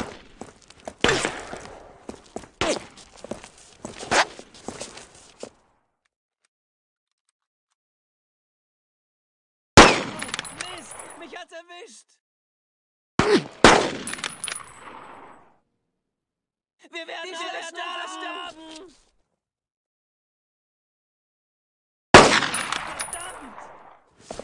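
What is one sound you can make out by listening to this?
A rifle fires loud shots that echo and fade.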